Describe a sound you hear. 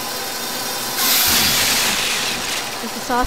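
A spinning saw blade grinds loudly against metal.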